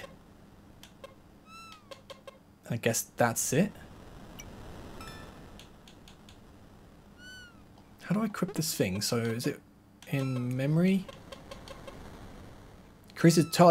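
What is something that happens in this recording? Short electronic menu blips chime.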